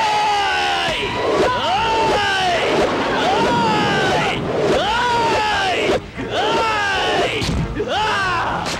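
Heavy blows land in a fight.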